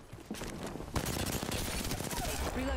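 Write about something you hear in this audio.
Gunshots ring out close by.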